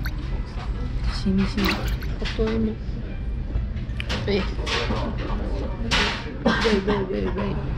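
Chopsticks click against a ceramic bowl.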